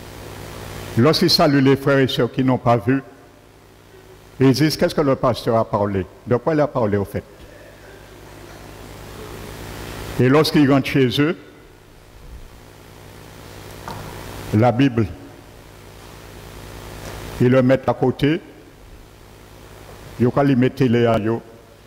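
A man speaks through a headset microphone and loudspeakers, with animation and long pauses.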